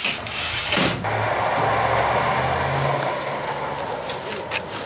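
A bus engine hums steadily nearby.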